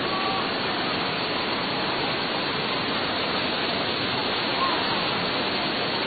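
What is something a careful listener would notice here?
Floodwater rushes loudly down a street.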